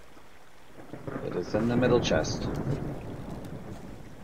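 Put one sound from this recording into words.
A man speaks close to a microphone.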